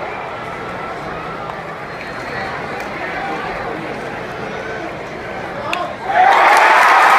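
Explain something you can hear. A large stadium crowd murmurs and chatters.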